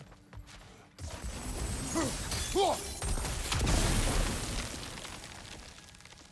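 A magical blast bursts with a deep crackling roar.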